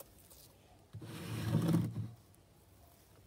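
Slime splashes into a bowl of water.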